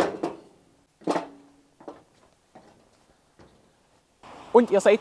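Footsteps thud on a metal ramp.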